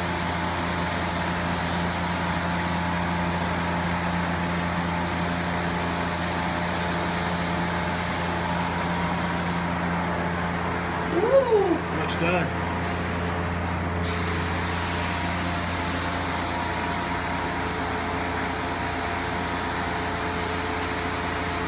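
A spray gun hisses steadily close by.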